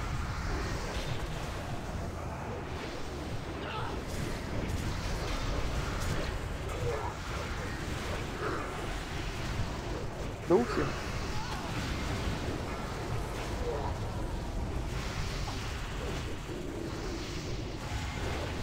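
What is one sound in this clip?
Magic spells whoosh and crackle amid a noisy battle.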